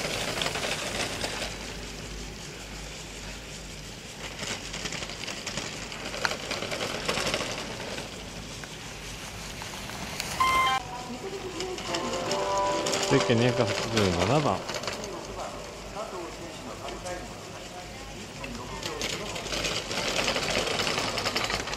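Skis carve and scrape hard across icy snow.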